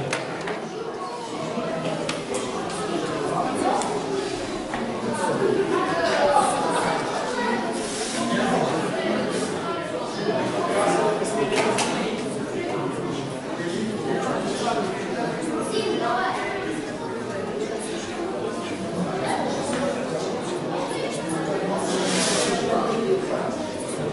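A crowd chatters and calls out in a large echoing hall.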